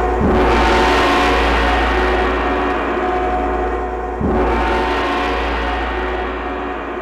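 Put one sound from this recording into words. Music plays through loudspeakers.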